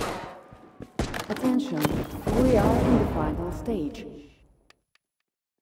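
A grenade explodes with a loud, rumbling blast.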